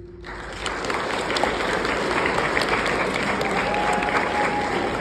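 A piano plays a tune in an echoing hall.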